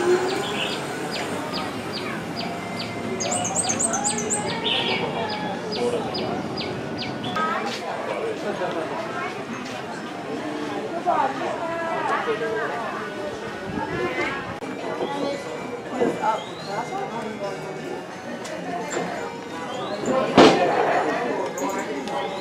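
Many people talk at once along a busy outdoor street.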